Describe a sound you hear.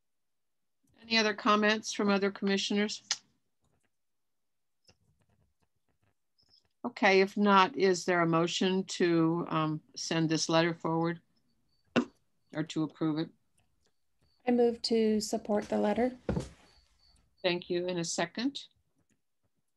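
An older woman speaks calmly over an online call, in short phrases with pauses.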